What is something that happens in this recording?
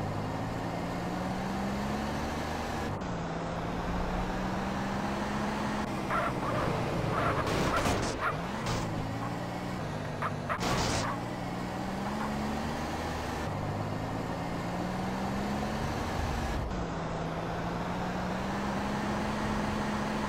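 A car engine hums steadily and rises and falls in pitch as it drives.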